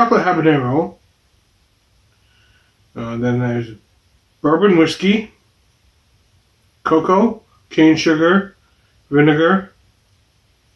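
A man speaks calmly close to a microphone, in short bursts with pauses.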